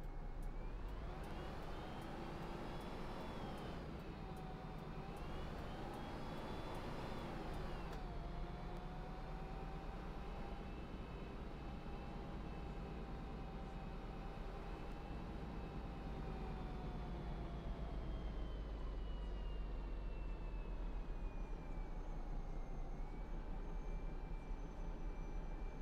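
A bus engine hums and whines, rising and falling in pitch as it speeds up and slows down.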